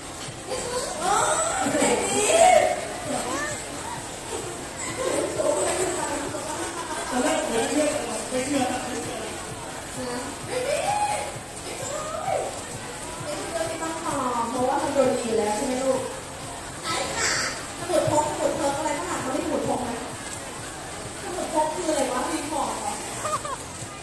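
A man speaks with animation through a loudspeaker microphone in a large echoing hall.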